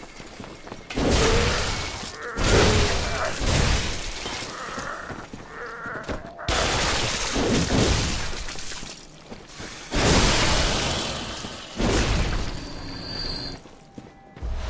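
Heavy weapon blows swing and strike with loud crashing bursts.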